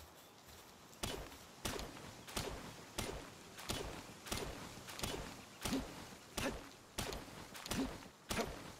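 A pickaxe strikes rock with repeated sharp clinks.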